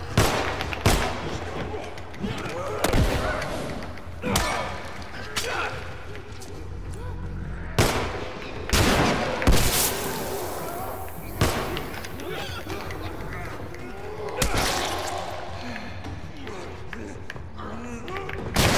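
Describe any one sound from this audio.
Loud gunshots ring out one after another with a short echo.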